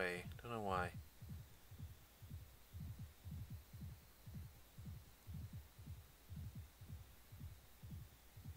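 Hooves thud at a steady, slow walking rhythm.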